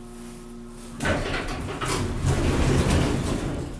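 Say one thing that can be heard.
Elevator doors slide open with a rumble.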